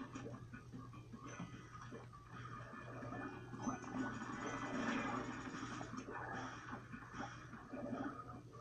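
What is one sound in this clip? Game music and sound effects play from a television speaker.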